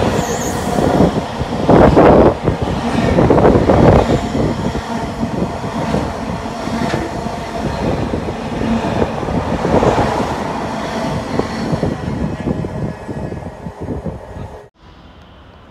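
A freight train rushes past close by, its wheels rumbling and clattering on the rails.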